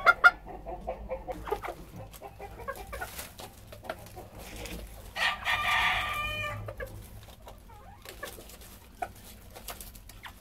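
Chickens scratch and rustle in dry straw.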